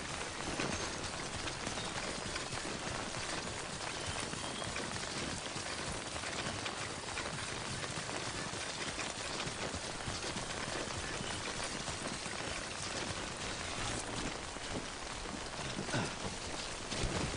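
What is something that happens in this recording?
Heavy footsteps tread through grass.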